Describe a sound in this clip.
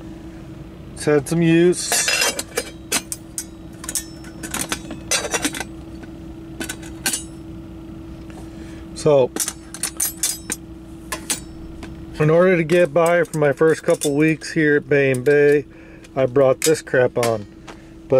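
Metal pot lids clink and clatter as a hand handles them.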